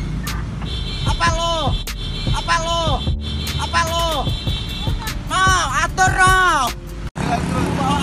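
A young man shouts loudly and angrily close by.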